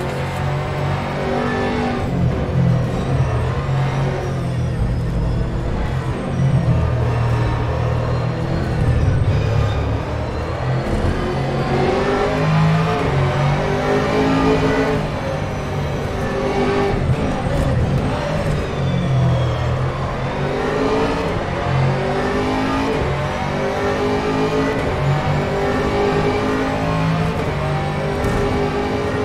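A racing car engine roars loudly, revving up and down through the gears.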